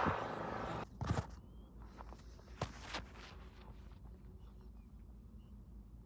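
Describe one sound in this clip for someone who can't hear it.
Running footsteps thud on a dirt path close by and then fade away.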